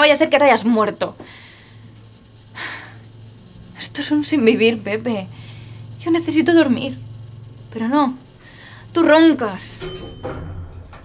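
A young woman speaks close by with rising agitation.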